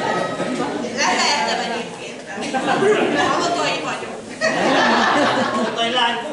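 Several zithers are strummed together in a lively tune.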